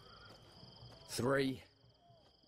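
A second man counts down slowly in a low voice.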